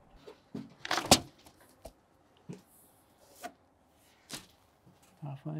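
A window frame knocks and taps.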